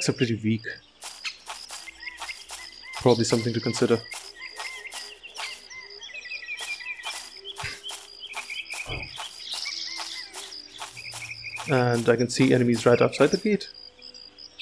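Armoured footsteps run quickly over the ground.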